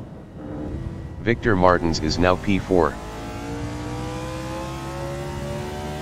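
A race car engine hums steadily and slowly rises in pitch.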